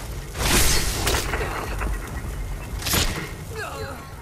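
A magic spell crackles and roars in loud bursts.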